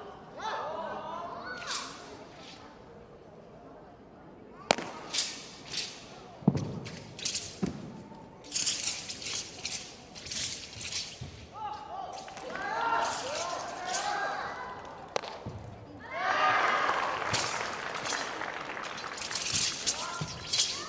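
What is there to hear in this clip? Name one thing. A blade swishes through the air in quick strokes.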